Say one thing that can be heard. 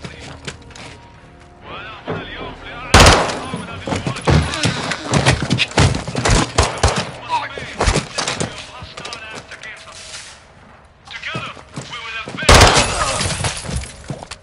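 Boots thud on a hard floor as soldiers move quickly.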